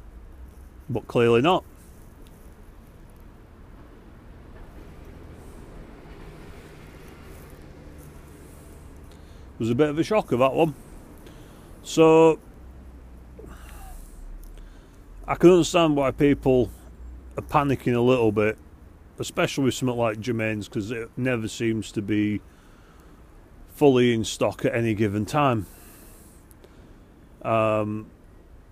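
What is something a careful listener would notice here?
A man speaks calmly and close, in short bursts with pauses.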